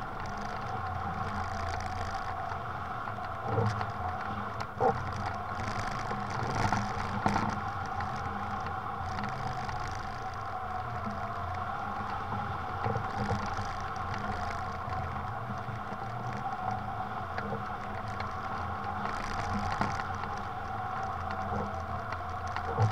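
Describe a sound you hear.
Wind rushes steadily past a hang glider in flight.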